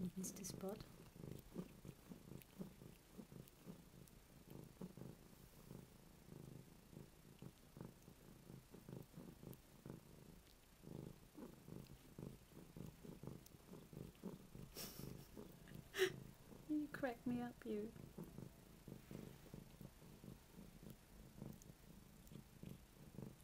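A cat purrs loudly up close.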